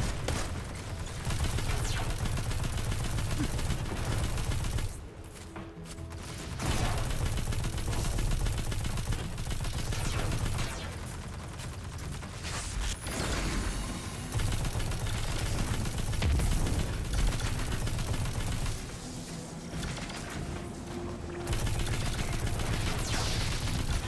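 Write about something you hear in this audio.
Rapid energy gunfire crackles and booms in bursts.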